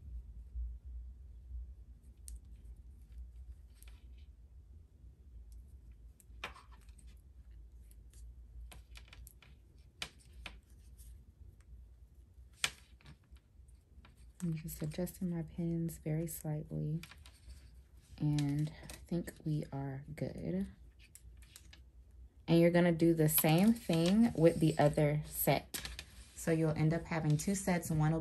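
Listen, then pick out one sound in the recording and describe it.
Fabric rustles softly as it is folded and handled.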